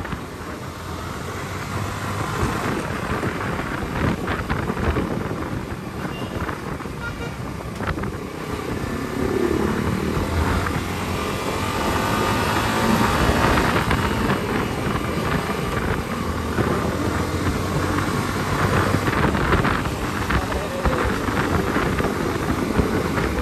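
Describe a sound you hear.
A motorcycle engine hums and revs steadily up close.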